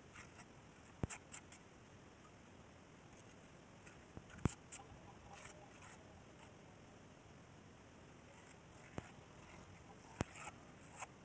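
A trowel taps against a hard edge.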